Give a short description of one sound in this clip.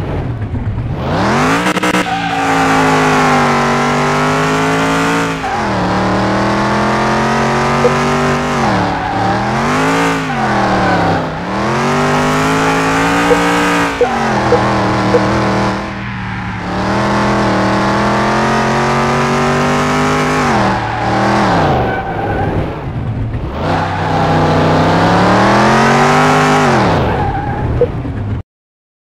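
A car engine revs hard, rising and falling in pitch as the gears shift.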